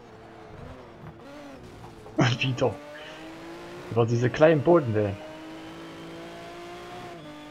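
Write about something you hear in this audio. A race car engine drones at speed.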